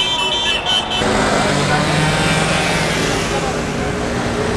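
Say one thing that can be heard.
Traffic rumbles past on a street.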